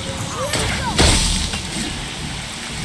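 A heavy blow strikes and shatters something with a bright, ringing crash.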